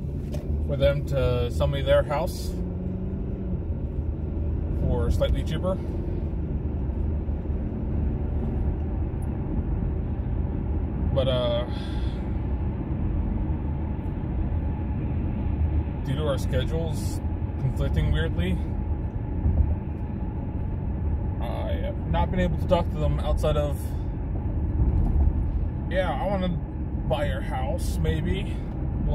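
A car engine hums low and steady as the car drives.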